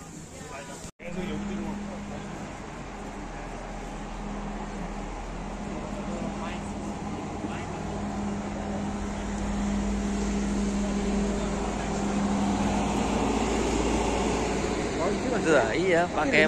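A bus engine idles nearby with a steady low hum.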